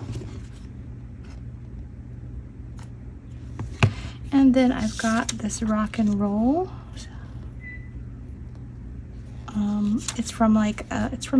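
Paper rustles softly as it is handled and pressed down.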